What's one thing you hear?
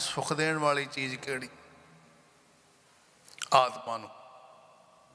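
An elderly man sings or chants into a microphone, close and clear, with pauses.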